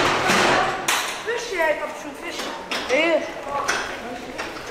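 Boys talk with animation nearby.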